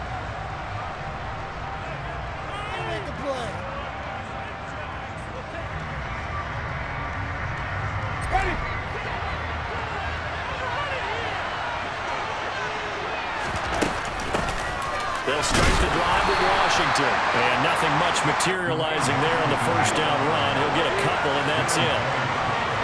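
A large stadium crowd murmurs and cheers, swelling to a loud roar.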